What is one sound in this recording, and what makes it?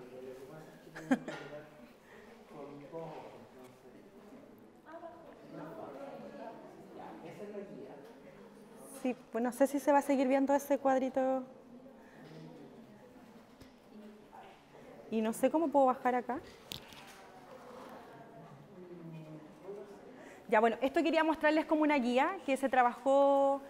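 A woman speaks with animation through a microphone in an echoing room.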